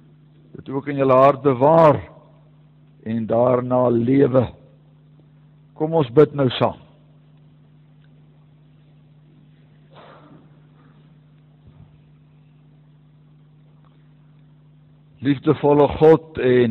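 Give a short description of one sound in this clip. An older man speaks calmly through a microphone, in pauses.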